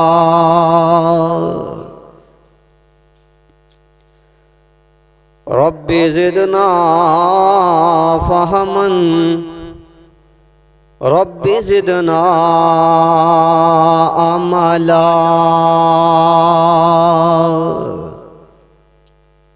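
A man chants in a drawn-out, melodic voice through a microphone, in an echoing hall.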